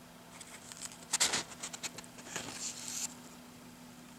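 Paper pages rustle as a hand turns them.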